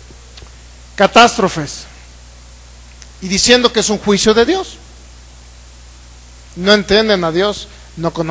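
A man sings in short phrases through a microphone and loudspeakers.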